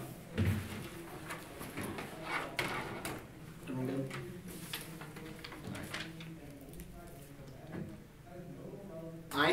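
A young man speaks steadily into a microphone.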